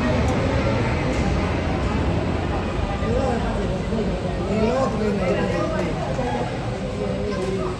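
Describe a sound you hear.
A jet airliner roars loudly as it climbs away overhead.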